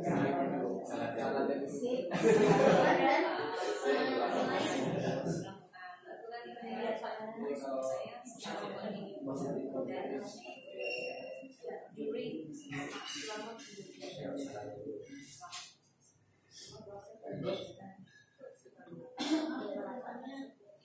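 Several adults talk at once in small groups, in a room that echoes a little.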